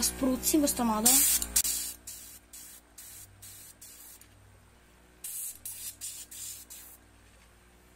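An airbrush hisses in short bursts of spray.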